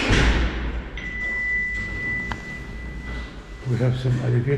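A lift chime rings with a steady tone.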